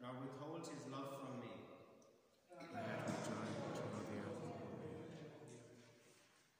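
A man speaks aloud, echoing through a large hall.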